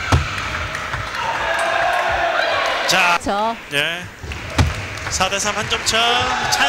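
A table tennis ball clicks sharply off paddles and the table in a fast rally.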